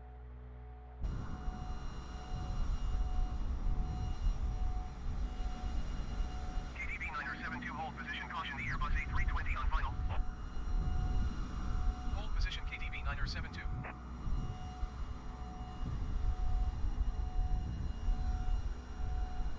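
Wind roars and rumbles past an aircraft in flight.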